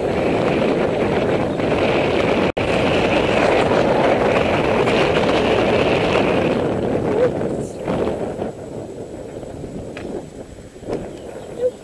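Bicycle tyres roll and hum on tarmac.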